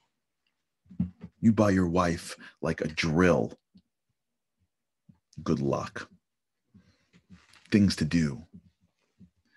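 A man speaks with animation, close to a microphone, in short bursts with pauses.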